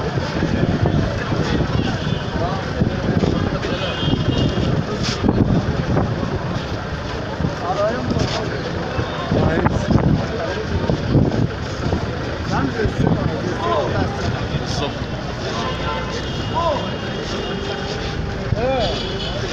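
A cloth sack rustles as hands handle it.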